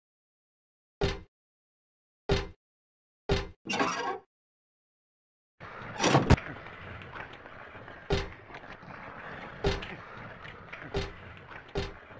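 Footsteps clang on a metal grating floor.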